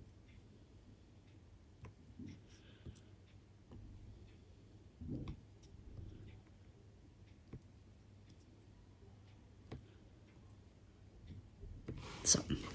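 A pen taps softly as small beads are placed onto a plastic sheet.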